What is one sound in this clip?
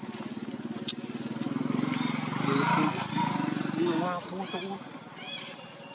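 A baby monkey squeals and whimpers.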